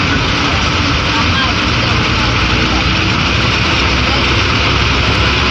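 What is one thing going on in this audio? A bus engine roars steadily from inside the bus.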